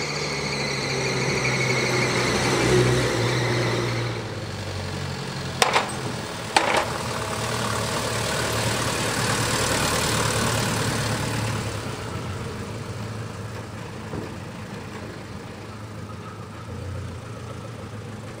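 An old truck engine rumbles and chugs as the truck drives past.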